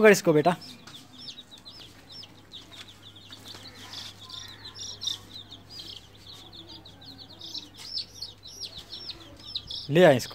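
Chicks cheep rapidly and high.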